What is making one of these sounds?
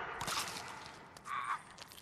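A man groans in pain.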